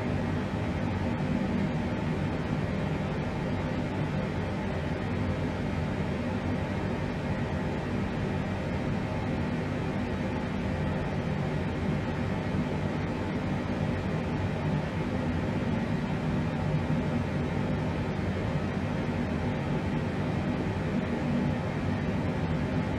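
Jet engines hum steadily in a low, constant drone.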